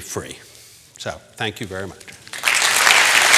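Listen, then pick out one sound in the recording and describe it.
An elderly man speaks into a microphone in a large echoing hall.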